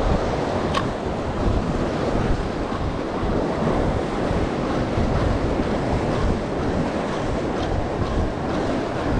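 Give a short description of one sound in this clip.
Wind blows hard across the open sea.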